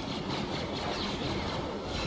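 A lightsaber hums and swishes.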